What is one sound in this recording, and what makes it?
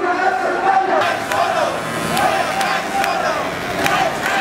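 A crowd claps hands.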